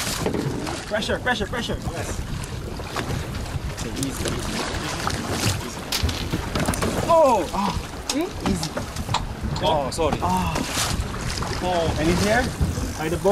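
Wind blows across the open water.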